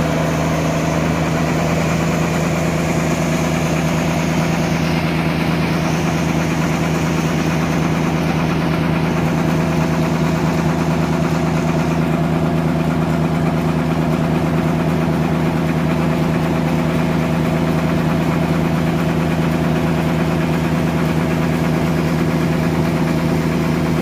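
A large saw machine hums and drones steadily close by.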